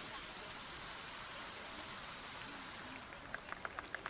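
A fountain sprays and splashes water, then dies away.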